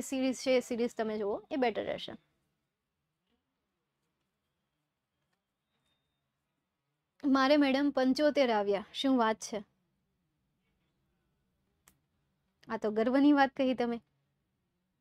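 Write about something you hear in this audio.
A young woman speaks calmly and clearly into a close microphone, in short bursts with long pauses.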